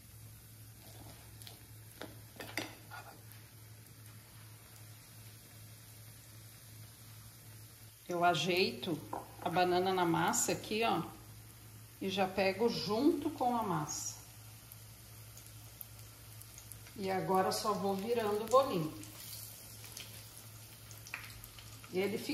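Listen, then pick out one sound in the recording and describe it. Hot oil sizzles and bubbles in a frying pan.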